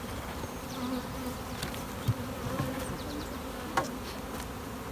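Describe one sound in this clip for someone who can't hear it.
A wooden hive lid knocks and scrapes as it is lifted off.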